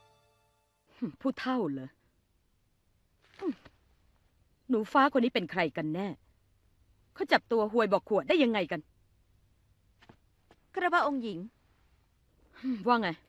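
A young woman speaks with feeling, close by.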